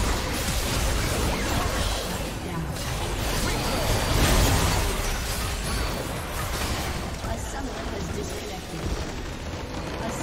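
Game spells and attacks crackle and explode in a busy fight.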